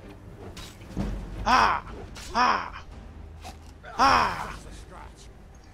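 A laser sword swings with falling electronic whooshes.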